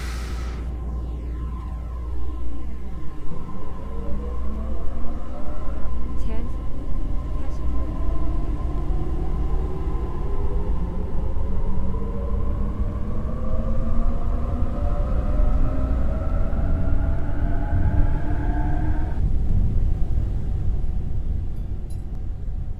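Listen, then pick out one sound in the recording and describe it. A train rumbles low and steadily along the track.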